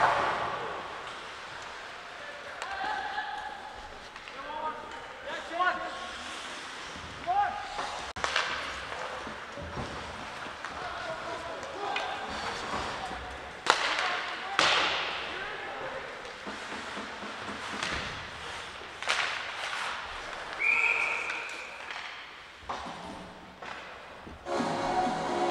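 Hockey sticks and a puck clack sharply on the ice.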